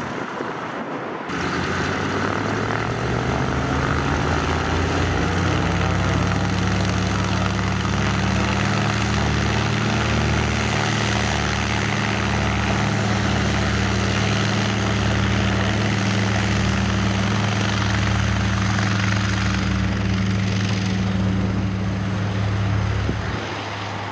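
Piston propeller engines roar loudly and throb steadily close by.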